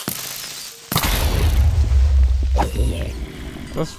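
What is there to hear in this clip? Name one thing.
A loud explosion booms and rumbles deeply.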